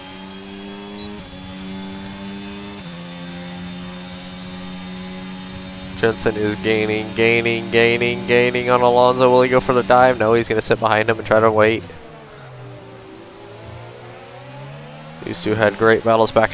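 A racing car engine hums steadily, dropping and rising in pitch as the car slows for a corner.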